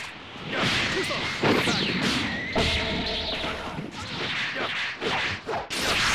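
Punches and kicks thud in a video game fight.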